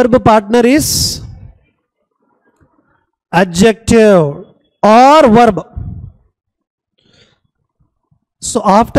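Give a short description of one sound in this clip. A man speaks calmly and clearly into a close microphone, explaining.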